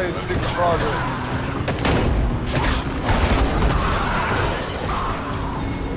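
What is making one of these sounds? A car engine rumbles steadily as the car drives over rough ground.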